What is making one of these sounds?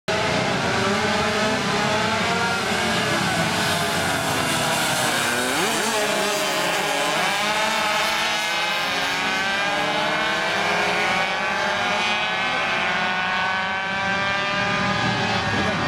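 Several motorcycle engines roar and rev loudly as the bikes accelerate past close by, then fade into the distance.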